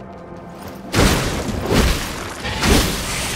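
A greatsword is swung through the air with heavy whooshes.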